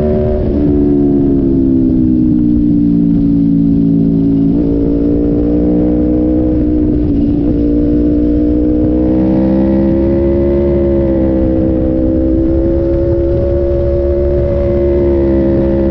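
Wind rumbles against the rider.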